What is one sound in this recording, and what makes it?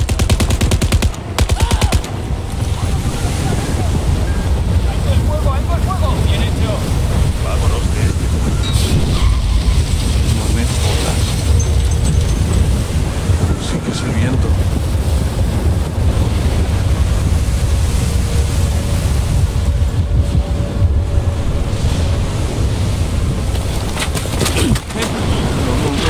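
Strong wind roars steadily in a storm.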